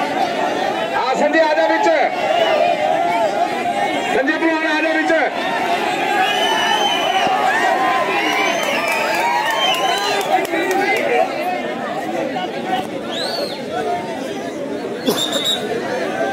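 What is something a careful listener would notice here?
A large outdoor crowd chatters and shouts.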